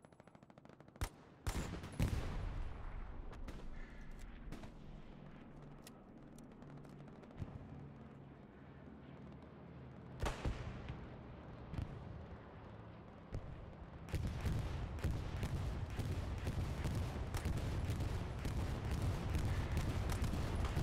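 A rifle fires single loud shots that echo outdoors.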